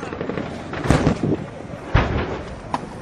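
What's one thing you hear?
A loud blast bursts close by.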